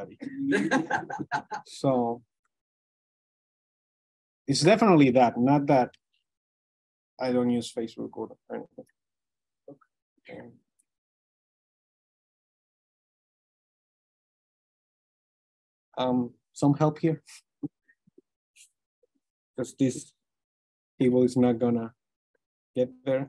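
A young man speaks calmly through a microphone in an online call, with pauses.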